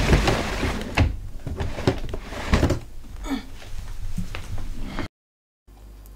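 Stiff boards scrape and rustle as they are shifted about.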